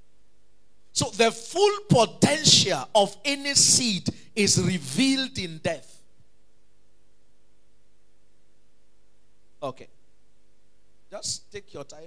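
A man preaches with animation through a microphone and loudspeakers in an echoing hall.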